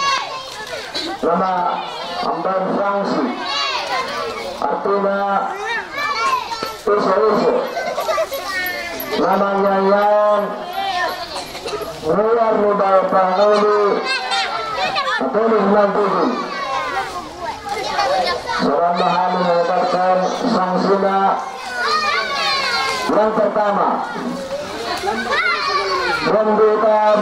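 A man sings through a microphone, loud and echoing outdoors.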